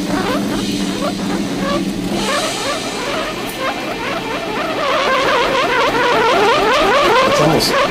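Sparks crackle and fizz from a burning fuse.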